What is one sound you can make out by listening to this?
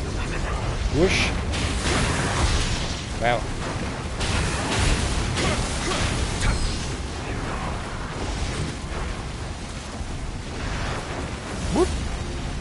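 Fiery blasts burst and crackle.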